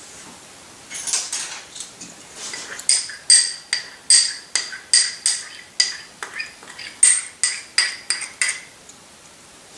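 A pepper mill grinds in quick, repeated bursts close by.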